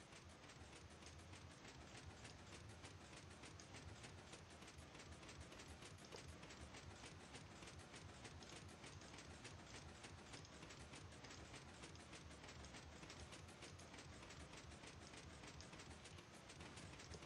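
Mechanical pistons clack rapidly and steadily.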